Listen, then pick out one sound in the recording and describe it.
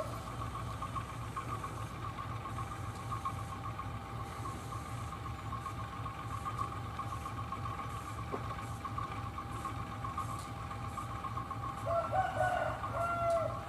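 A diesel locomotive engine rumbles steadily as a train approaches.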